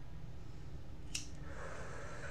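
A lighter clicks.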